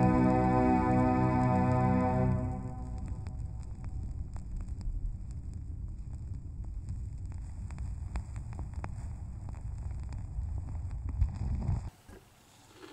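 Surface noise crackles and hisses from a spinning record.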